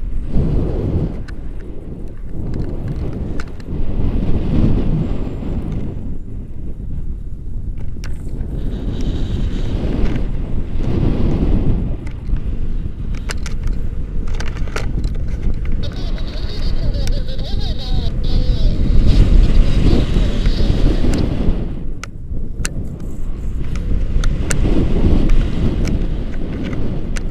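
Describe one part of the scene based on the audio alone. A man talks with animation close by, over the wind.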